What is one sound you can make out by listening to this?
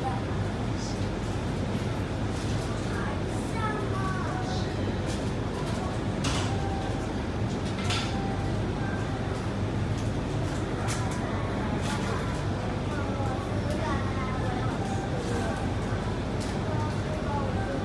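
A train's motors hum steadily and low.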